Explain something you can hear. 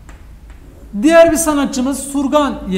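A young man speaks up close, calmly.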